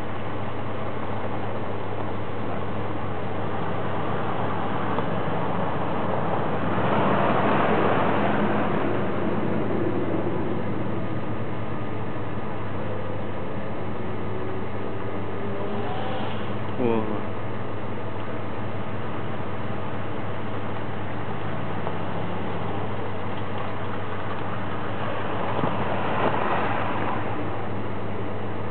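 An engine rumbles and strains as an off-road vehicle crawls over rough ground nearby.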